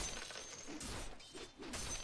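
Fantasy combat sounds clash and crackle with magic effects.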